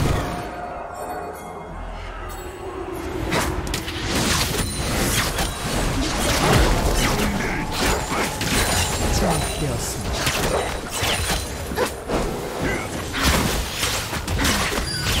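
Game spell effects whoosh, crackle and clash in a busy fight.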